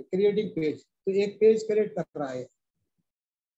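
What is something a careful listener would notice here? A middle-aged man speaks over an online call.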